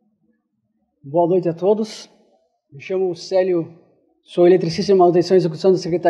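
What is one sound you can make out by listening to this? A young man speaks into a microphone in short phrases.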